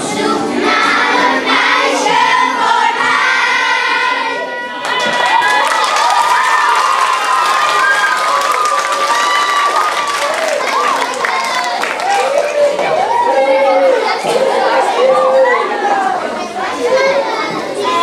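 Young children sing together in a large echoing hall.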